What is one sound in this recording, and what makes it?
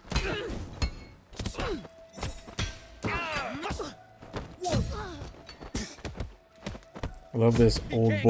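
Punches and kicks land with sharp thuds in a fight.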